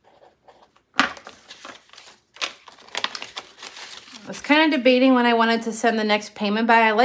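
Paper banknotes rustle and crinkle as they are handled.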